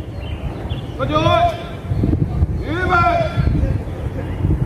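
A man calls out commands outdoors.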